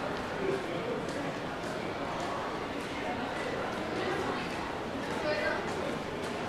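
Footsteps tap on the pavement.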